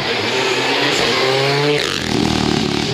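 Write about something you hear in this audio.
A rally car engine roars close by, revving and shifting gears as it passes.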